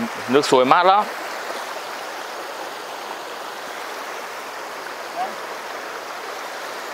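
Shallow water rushes steadily over rocks outdoors.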